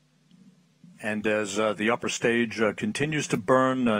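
A man speaks steadily and clearly.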